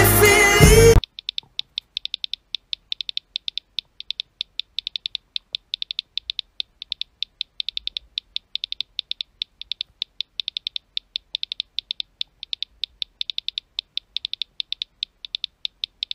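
Phone keyboard keys click in quick, uneven bursts as text is typed.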